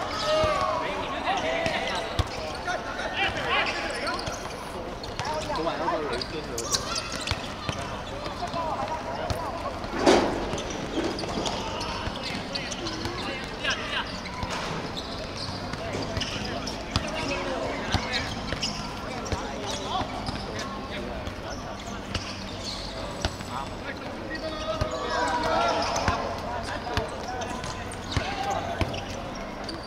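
Young men shout and call out to each other across an open outdoor court.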